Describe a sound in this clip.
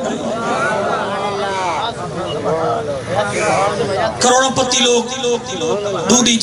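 A man speaks forcefully through a loud microphone outdoors.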